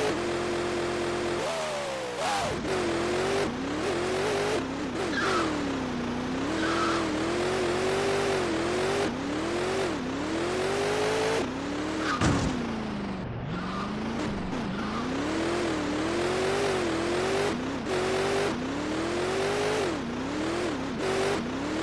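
A car engine hums steadily, then revs up and down over and over.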